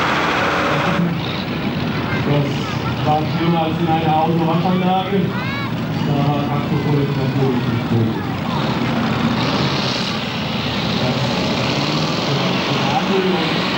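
A tractor engine rumbles and revs up.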